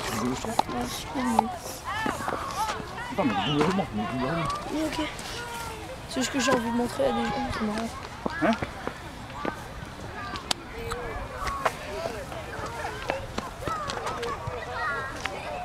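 Children talk and call out excitedly nearby outdoors.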